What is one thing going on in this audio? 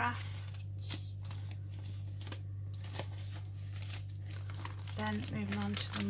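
Plastic sheets rustle and crinkle as they are handled.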